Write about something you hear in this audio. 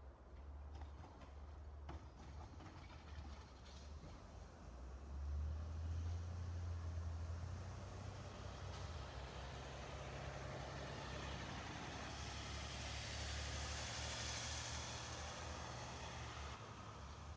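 A garbage truck engine rumbles down the street.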